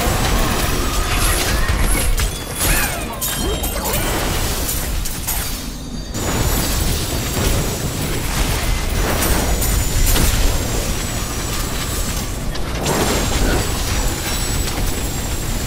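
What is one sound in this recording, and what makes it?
Monsters shriek and growl as they are struck.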